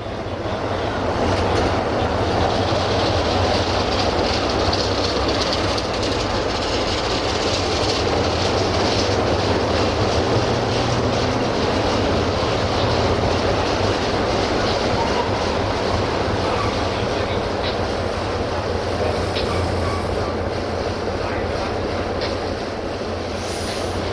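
A diesel locomotive engine rumbles steadily nearby.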